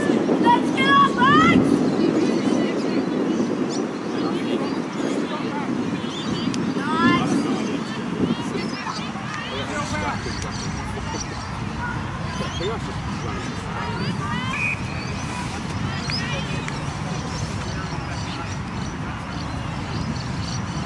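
Wind blows across an open field outdoors.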